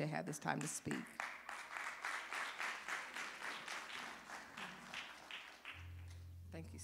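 A congregation applauds.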